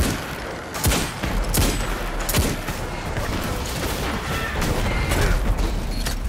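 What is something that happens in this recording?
Explosions burst with a crackling roar.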